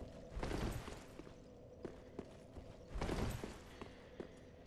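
A heavy weapon swings and strikes with a whoosh.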